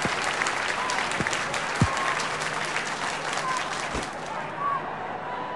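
A stadium crowd cheers loudly and then fades.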